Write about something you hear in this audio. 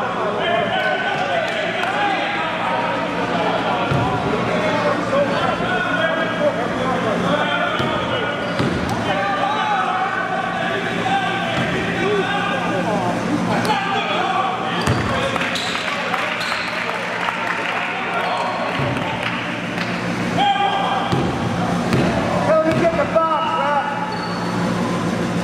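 Men and women chatter in a large echoing gym.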